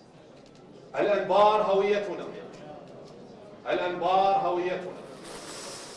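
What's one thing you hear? A young man speaks into a microphone in a calm, announcing voice, heard through loudspeakers in a large room.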